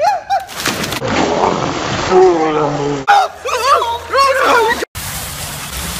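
Young men splash into water.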